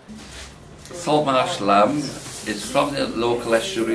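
A middle-aged man speaks up close, with animation.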